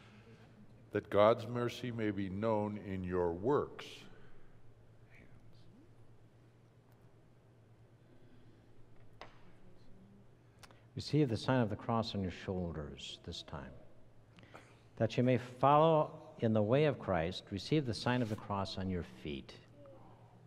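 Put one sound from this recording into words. An elderly man speaks slowly and clearly in a large echoing room, heard from a distance.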